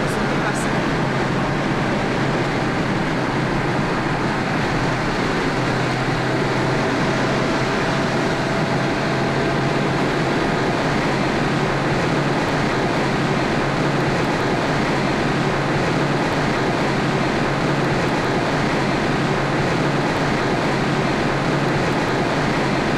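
Road and wind noise roar steadily inside a moving car.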